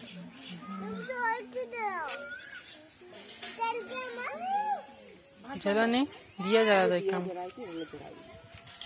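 A young child chatters and squeals close by.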